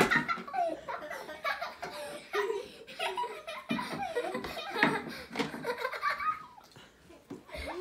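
Young children giggle close by.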